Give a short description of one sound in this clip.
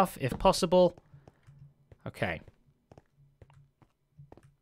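Footsteps tread softly on stone.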